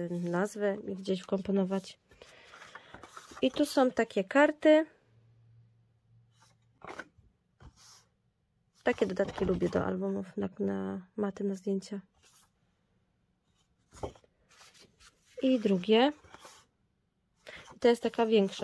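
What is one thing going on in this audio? Sheets of paper rustle and flap as they are handled.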